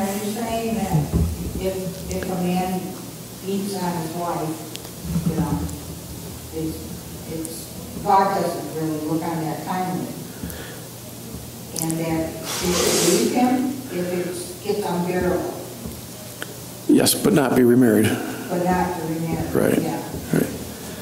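An elderly man speaks calmly and earnestly into a microphone in a room with slight echo.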